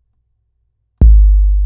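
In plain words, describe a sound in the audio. A deep electronic bass drum booms once and slowly fades.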